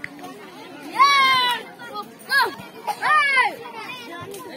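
Children shout loudly nearby.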